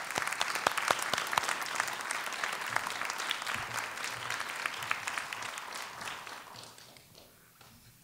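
A man claps his hands amid applause in a large hall.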